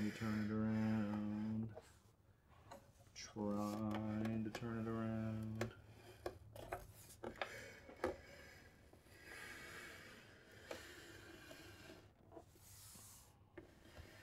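A plastic model knocks and rattles softly as it is handled.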